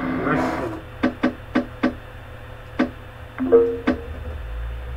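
Short electronic menu beeps sound several times.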